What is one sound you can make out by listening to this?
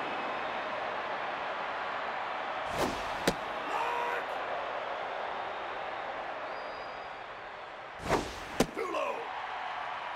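A stadium crowd murmurs steadily.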